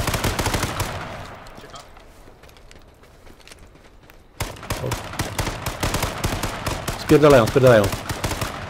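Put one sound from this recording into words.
Footsteps crunch on gravel and dirt.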